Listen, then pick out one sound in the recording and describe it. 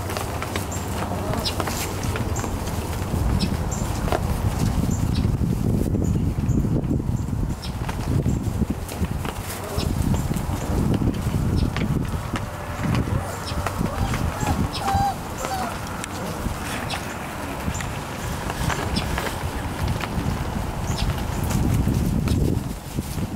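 Puppies rustle and scratch through dry wood shavings.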